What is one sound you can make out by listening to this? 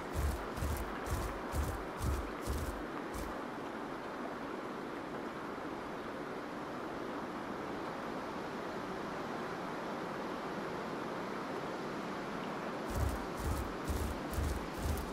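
Heavy footsteps thud in a steady walking rhythm.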